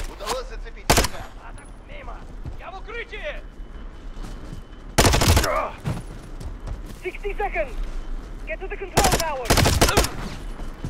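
A rifle fires loud rapid bursts of shots.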